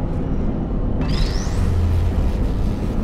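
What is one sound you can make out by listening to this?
A rising whoosh sounds as an object is grabbed and lifted.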